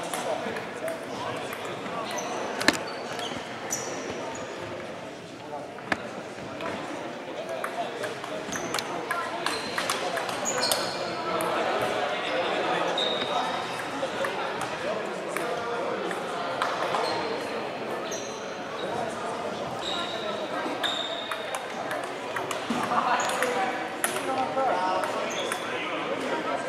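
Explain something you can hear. Ping pong balls click on tables and paddles in a large echoing hall.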